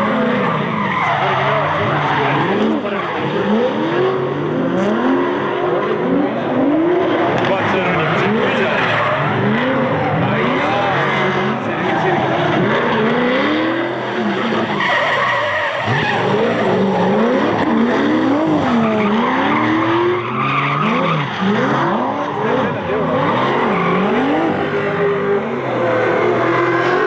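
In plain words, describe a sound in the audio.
Car engines rev hard and rise and fall in pitch, close by.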